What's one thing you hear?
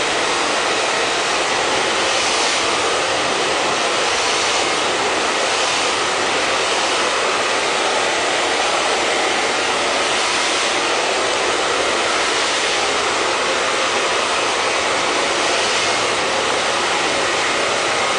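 A hair dryer blows with a steady roar.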